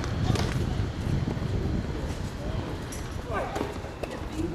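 A tennis ball is struck with a racket.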